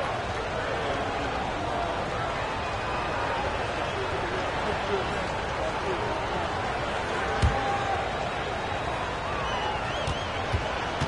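A large crowd cheers and murmurs steadily throughout an arena.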